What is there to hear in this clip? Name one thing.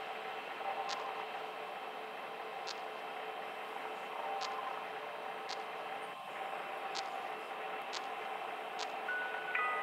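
Short electronic clicks sound as a monitor switches between views.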